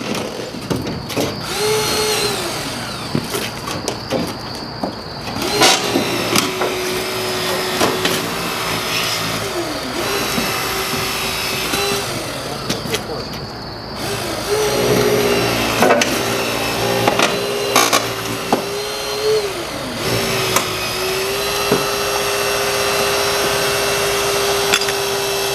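A battery-powered hydraulic rescue tool whines as its motor runs up and down.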